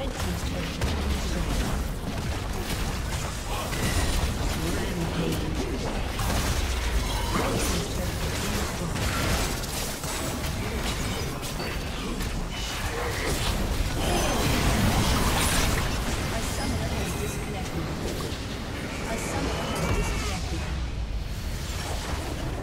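Spells and attacks blast and crackle in a busy video game battle.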